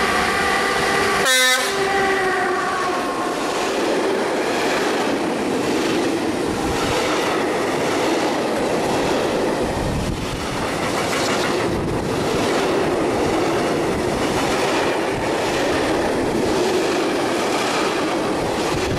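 A long freight train rumbles and clatters past at speed.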